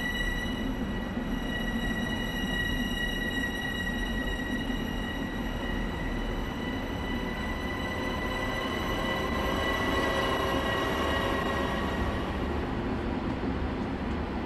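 A train rumbles past on the rails, its wheels clattering.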